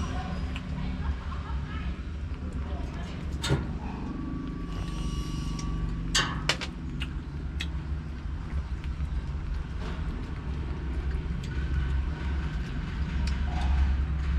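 A small monkey chews and crunches a dry leaf.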